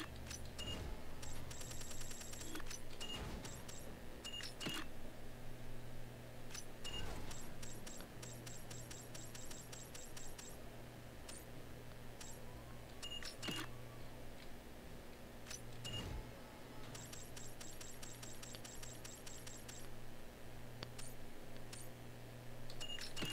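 Short electronic menu beeps and rapid ticks sound as options change.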